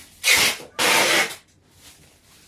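Plastic wrap crinkles and rustles loudly.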